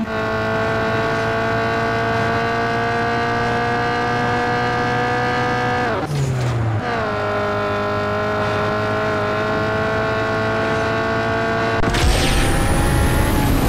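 A racing car engine roars steadily at high revs.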